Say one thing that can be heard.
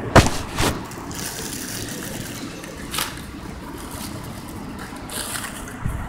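Footsteps scuff on a paved walkway.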